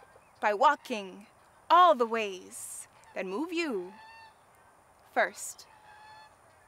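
A young woman speaks expressively and close to a microphone.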